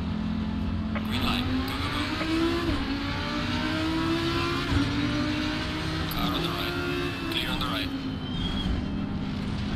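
A race car engine roars as it accelerates, rising in pitch and dropping at each gear change.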